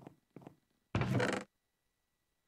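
A wooden chest in a video game creaks open.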